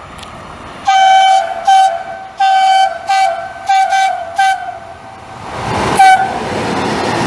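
A train horn sounds in repeated loud blasts.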